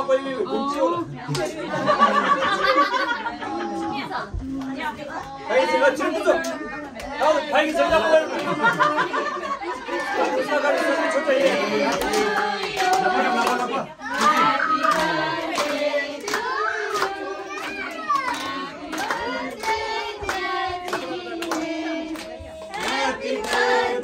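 A crowd of adults and children sing together indoors.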